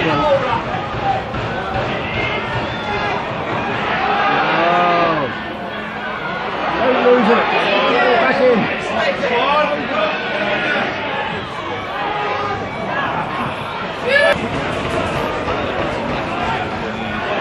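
A large outdoor crowd chatters and shouts throughout.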